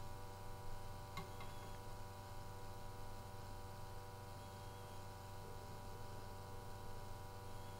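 A gas detector sounds a steady electronic alarm tone.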